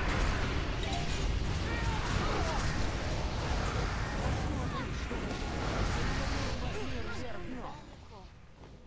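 Magic blasts crackle and boom in a busy battle.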